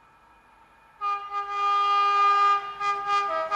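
A train horn blares loudly and steadily.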